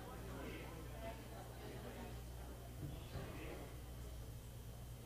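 A crowd of people murmur and chat in a hall.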